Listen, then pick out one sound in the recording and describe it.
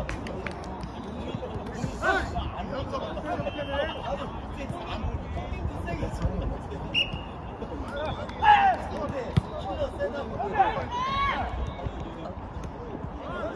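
A ball thumps as players kick it.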